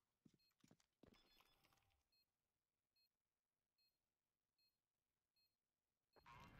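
A bomb timer beeps at a steady pace.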